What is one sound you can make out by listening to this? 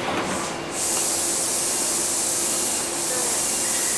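A crowd murmurs in an echoing station.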